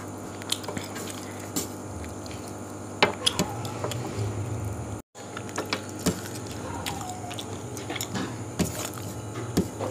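Fingers squish and scrape food against a metal plate.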